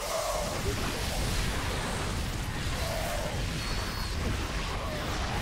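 Gunfire and explosions crackle from a large game battle.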